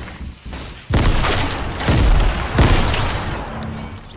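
An explosion booms.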